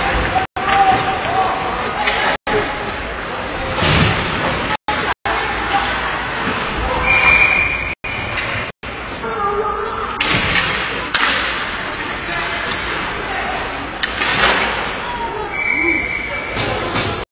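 Ice hockey skates scrape and carve across the ice in an echoing rink.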